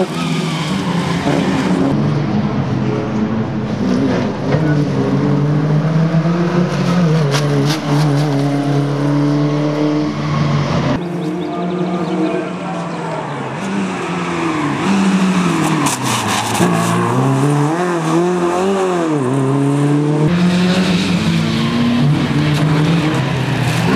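A rally car engine revs hard and roars past, rising and falling in pitch.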